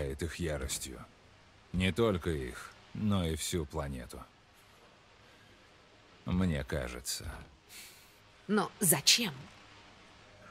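A younger man answers in short lines, close by.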